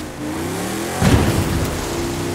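A heavy thud sounds as the car lands.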